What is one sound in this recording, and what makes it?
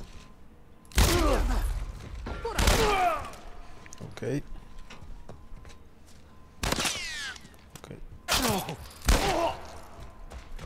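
Gunshots ring out loudly, with echoes.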